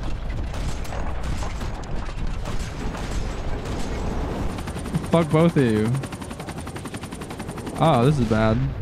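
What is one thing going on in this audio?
A helicopter's rotor thumps rapidly overhead.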